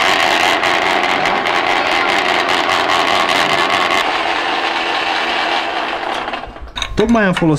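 A machine runs with a loud, steady grinding whir.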